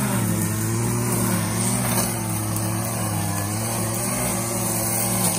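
A small petrol engine hums steadily close by.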